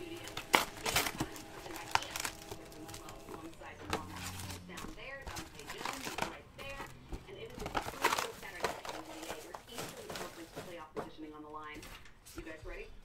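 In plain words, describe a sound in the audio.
Cardboard and plastic wrapping crinkle and tear as a box is opened.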